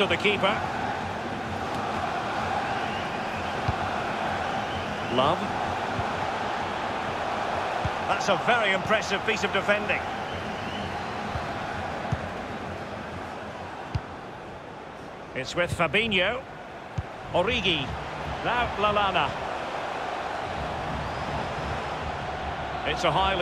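A large crowd murmurs and cheers steadily in a big stadium.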